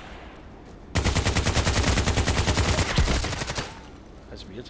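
An automatic rifle fires a long, rapid burst.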